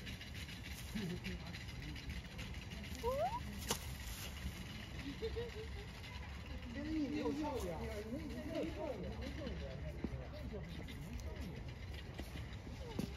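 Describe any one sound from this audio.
Dry straw rustles as a cat rolls in it.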